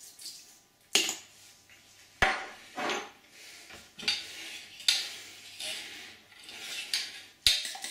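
A utensil clinks against a metal pan.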